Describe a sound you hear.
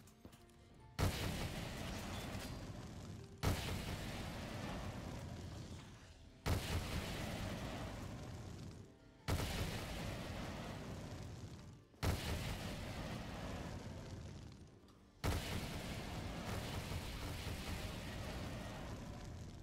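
A fire weapon fires with a sudden boom followed by a long roaring rush, again and again.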